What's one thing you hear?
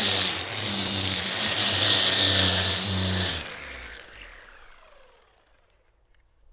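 A string trimmer whines loudly, cutting grass, then winds down.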